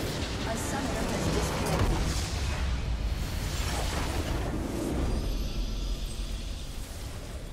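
Magic spells crackle and explode in a loud battle.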